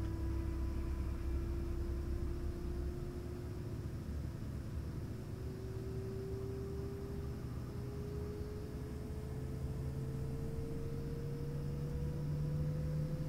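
A helicopter engine whines steadily, its pitch slowly rising.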